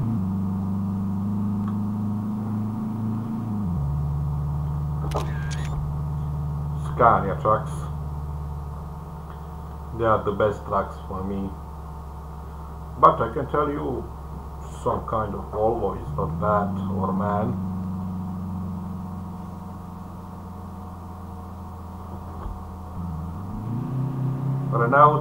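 A car engine hums steadily, its pitch shifting as the gears change.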